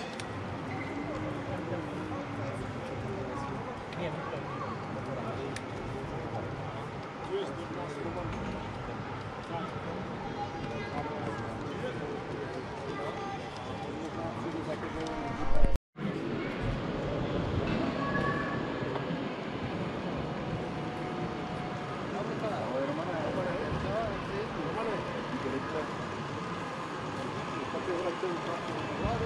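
A model train rolls along its track with a soft whirr.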